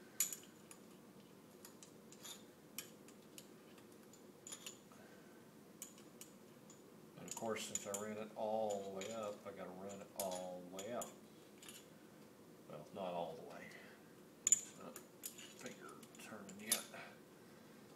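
Metal parts click and clink as they are fitted by hand.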